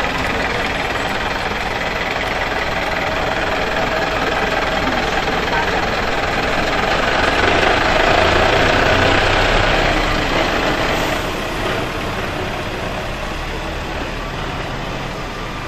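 A truck engine rumbles steadily as it drives slowly past and away.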